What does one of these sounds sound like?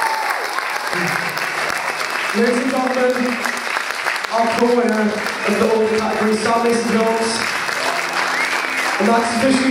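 A young man speaks with animation into a microphone over loudspeakers.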